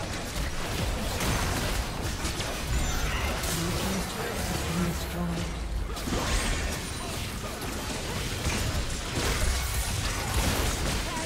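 Magic blasts, zaps and impacts crackle in a fast, busy fight.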